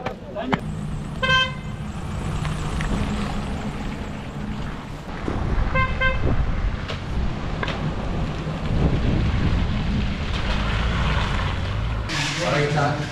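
A van engine hums as the van drives past.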